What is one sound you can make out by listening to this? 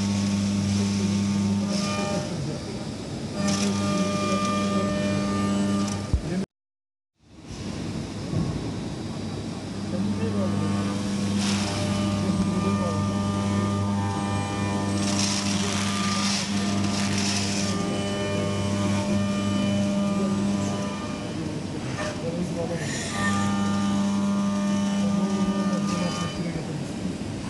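Coolant sprays and splashes inside the machine.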